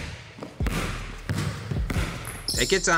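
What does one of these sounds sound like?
A basketball bounces on a hard indoor court, echoing.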